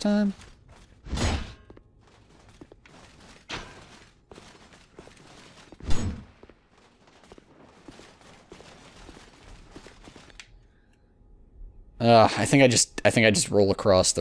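Footsteps scuff on a stone floor.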